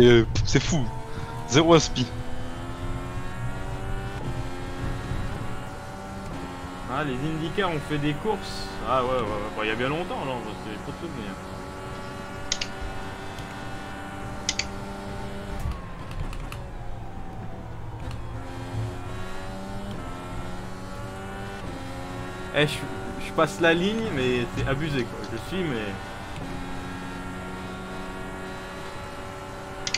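A racing car engine whines steadily, rising and falling in pitch as it shifts gears.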